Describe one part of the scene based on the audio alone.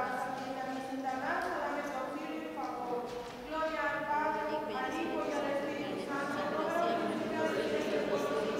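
A congregation sings together.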